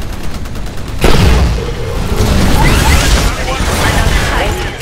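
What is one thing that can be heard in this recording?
A loud explosion roars and rumbles.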